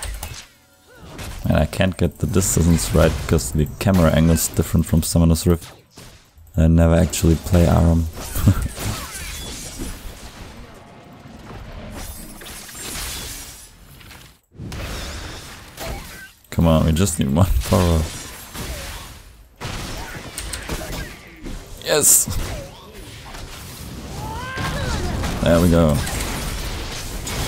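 Game spell effects whoosh and clash during a fight.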